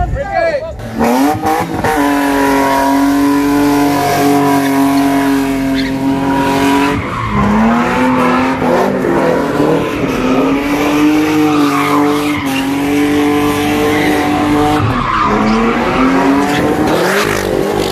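Tyres screech and squeal on the road.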